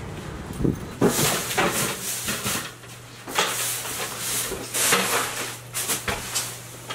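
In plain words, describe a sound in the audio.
Items rustle and thump as they are moved about.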